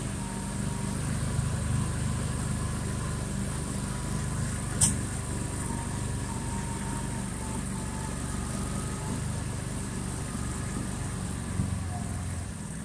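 An off-road vehicle's engine hums steadily as it drives.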